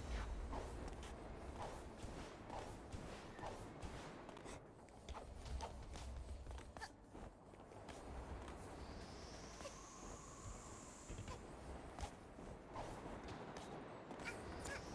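Game sound effects pop and whoosh steadily.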